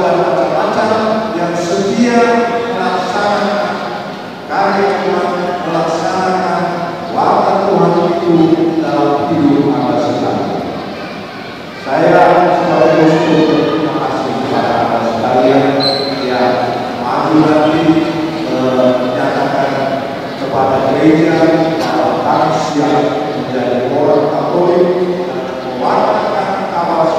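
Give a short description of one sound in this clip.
A man sings slowly through a loudspeaker in a large echoing hall.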